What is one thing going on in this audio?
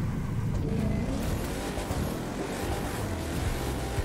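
A car engine roars as cars race along a road.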